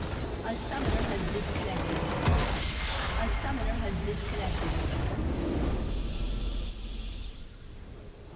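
A loud crumbling explosion bursts and rumbles.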